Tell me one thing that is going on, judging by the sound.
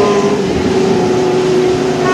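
A race car engine roars loudly.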